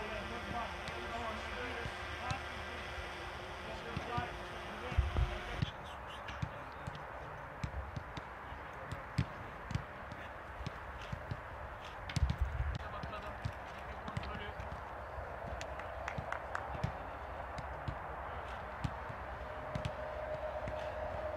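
A football is kicked with dull thuds, again and again, outdoors.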